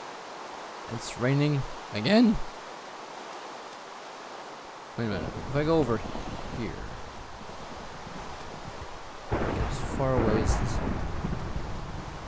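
A young woman speaks casually into a close microphone.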